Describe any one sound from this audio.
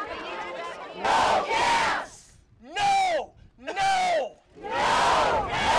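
A crowd chants loudly in unison, in repeated bursts.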